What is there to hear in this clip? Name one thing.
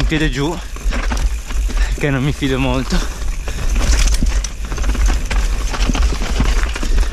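Bike tyres crunch and rattle over a rocky dirt trail.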